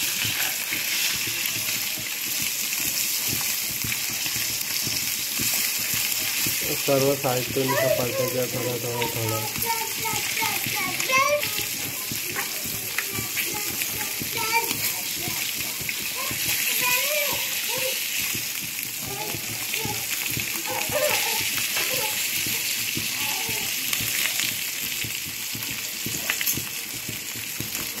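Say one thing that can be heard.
A metal spatula scrapes and taps against a pan.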